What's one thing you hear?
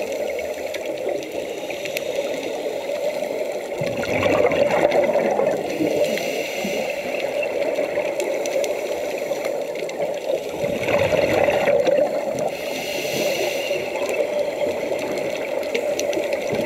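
Scuba breathing bubbles gurgle and rush underwater.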